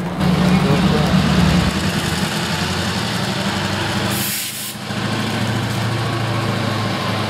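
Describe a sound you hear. A diesel locomotive rumbles past close by with a deep, steady engine drone.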